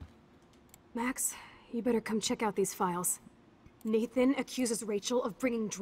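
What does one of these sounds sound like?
A young woman speaks in a casual, urgent tone.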